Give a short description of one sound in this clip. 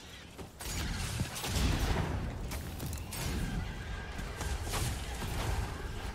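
A flamethrower roars in a video game.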